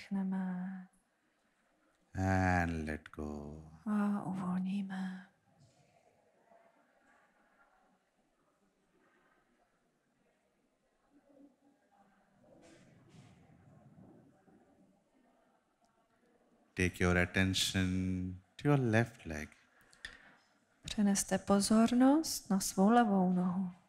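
A woman speaks calmly into a microphone over loudspeakers, with pauses.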